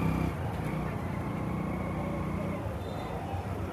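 A motorbike engine putters by.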